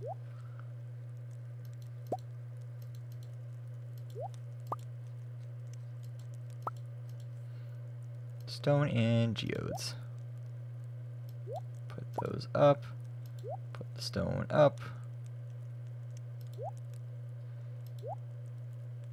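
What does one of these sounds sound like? Short rising game menu blips sound as items are picked.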